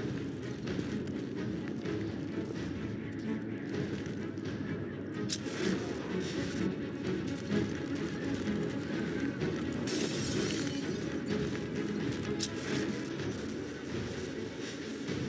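Soft footsteps creep across a hard floor.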